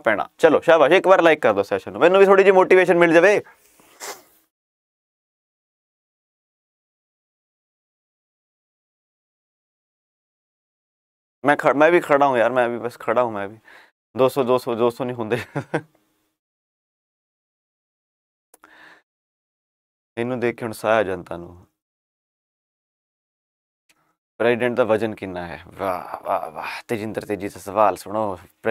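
A young man speaks calmly and close to a microphone, with pauses.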